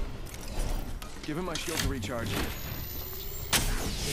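A shield battery whirs and crackles as it charges.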